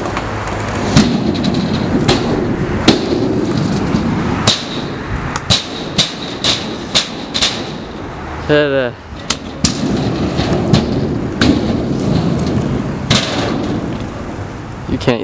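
A kick scooter's deck clacks against concrete on landings.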